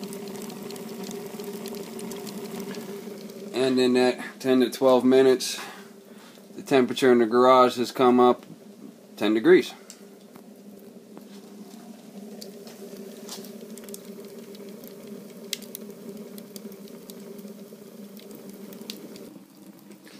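Burning wood crackles softly.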